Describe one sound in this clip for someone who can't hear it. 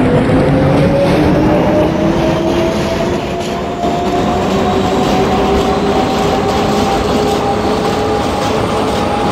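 An electric motor whines, rising steadily in pitch.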